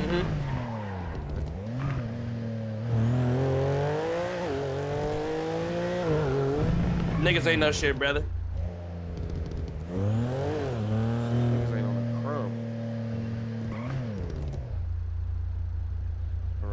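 A car engine revs up and down as it accelerates and shifts gears.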